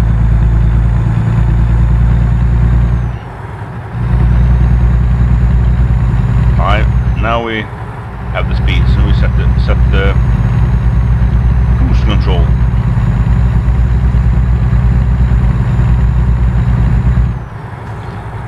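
A truck engine drones steadily with a low rumble.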